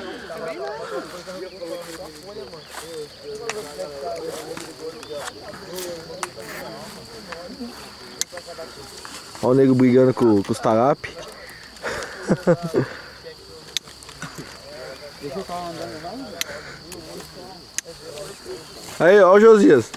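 Several men talk quietly nearby.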